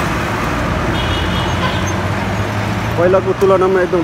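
A truck engine hums as it drives by.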